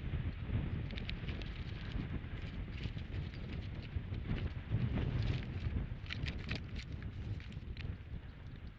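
Twigs and dry grass crackle and rustle as a large bird rearranges its nest.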